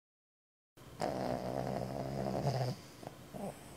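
A sleeping pig snores softly.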